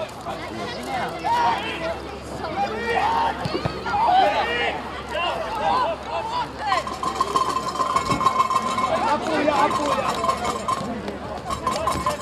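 Men shout and call to each other across an open outdoor field.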